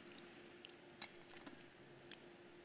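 A metal cup clinks softly.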